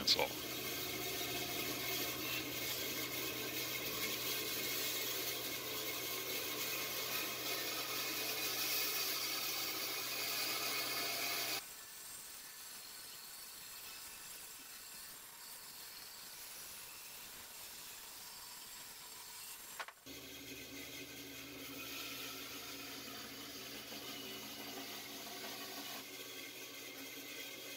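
A band saw blade cuts through wood with a rasping whine.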